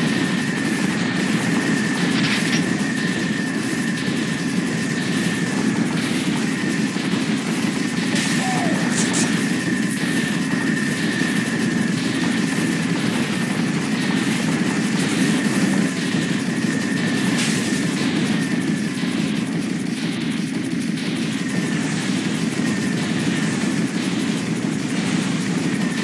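Explosions boom again and again.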